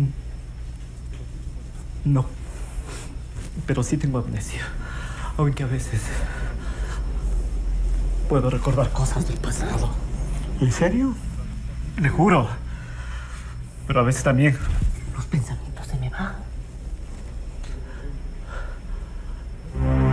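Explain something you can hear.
An older man speaks in reply.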